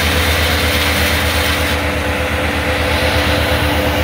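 A wood chipper grinds branches and blows out chips.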